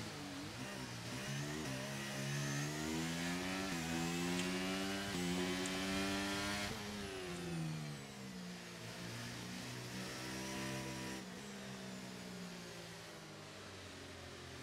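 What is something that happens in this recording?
A racing car engine screams, rising in pitch and dropping with each gear change.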